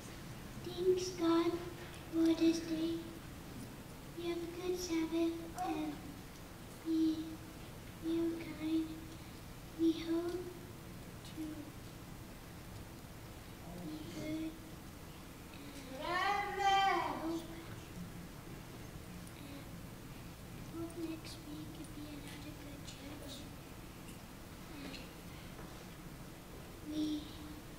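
A young boy speaks haltingly into a microphone in an echoing hall.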